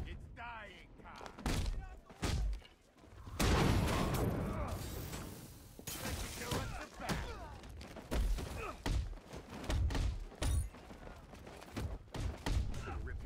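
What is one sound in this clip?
Heavy punches and kicks thud in quick bursts.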